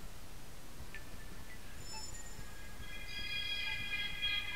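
A mobile phone plays a startup chime through its small speaker.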